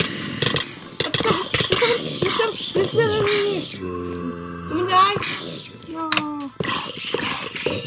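A sword strikes creatures with quick hits.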